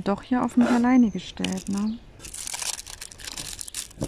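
Hands rub and press over a rustling plastic film.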